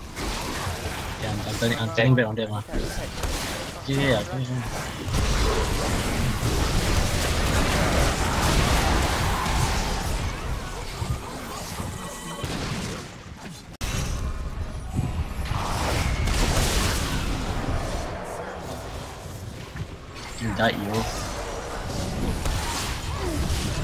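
Spells blast and weapons clash in a hectic fight.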